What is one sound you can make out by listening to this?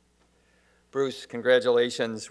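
A second man begins speaking through a microphone.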